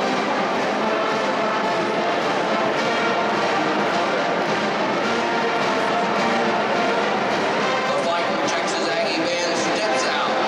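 A marching band plays brass and drums loudly in a large stadium.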